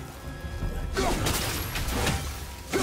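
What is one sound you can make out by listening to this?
Magic blasts crackle and burst.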